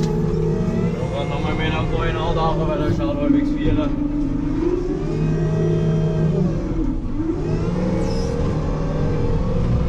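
A diesel engine revs up and down as the machine moves.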